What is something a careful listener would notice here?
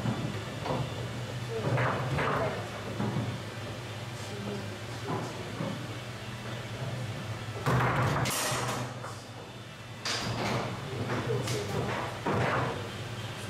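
A ball knocks and rattles against the players and walls of a foosball table.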